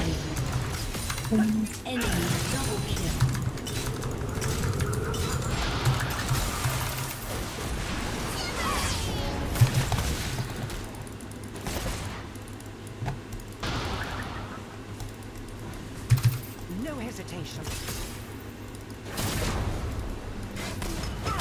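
Fantasy game combat effects crackle and whoosh.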